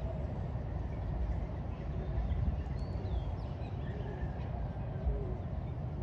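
Birds chirp and twitter in the open air.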